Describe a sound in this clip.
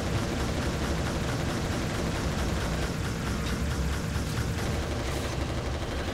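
Rapid gunfire rattles in a game.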